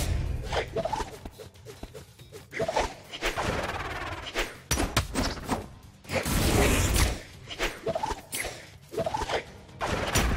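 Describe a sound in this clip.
Sword strikes whoosh and clash in rapid bursts.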